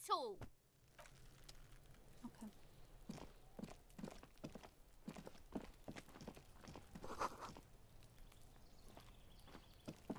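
Footsteps crunch softly on snowy ground.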